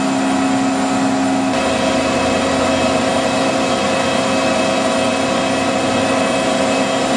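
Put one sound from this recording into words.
A jet engine hums and whines steadily nearby.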